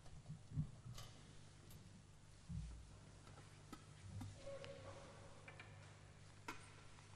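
A metal object clinks against stone as it is set down.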